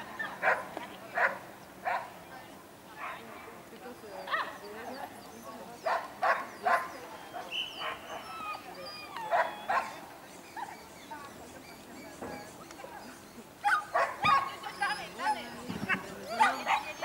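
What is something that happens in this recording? A woman calls out short commands to a dog outdoors.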